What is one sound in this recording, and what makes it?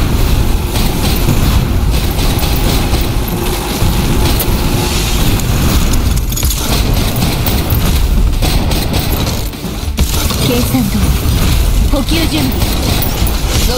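Guns fire in rapid bursts with loud blasts and explosions.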